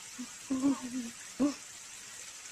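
A baby squeals and babbles.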